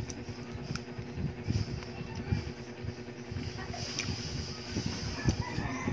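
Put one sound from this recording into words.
A young woman chews food noisily close to a microphone.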